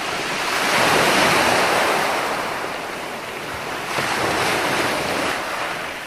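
Waves break and wash up onto a beach in surging swells.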